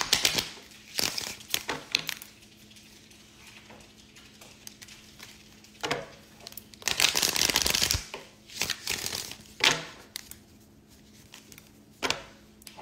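Cards tap and click against a hard surface.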